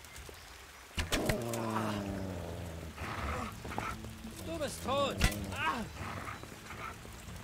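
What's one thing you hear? A man shouts threateningly.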